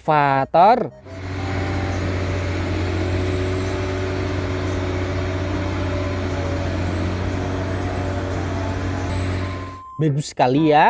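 A heavy diesel engine rumbles steadily at idle.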